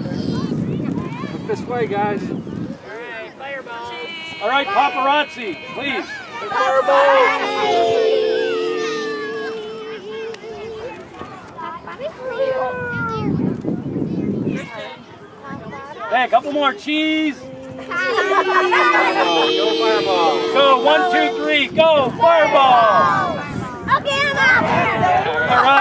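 Children chatter and shout excitedly nearby.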